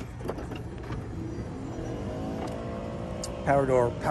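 A van's sliding door rolls open.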